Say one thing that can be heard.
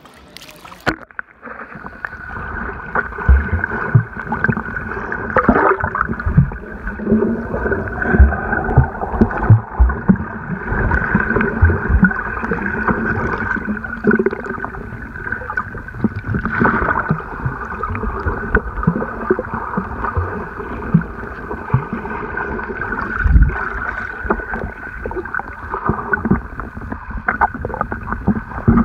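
Muffled underwater sloshing and bubbling goes on, with dull thumps.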